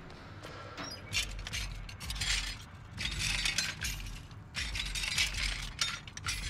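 Objects rattle and clink as someone rummages through a box.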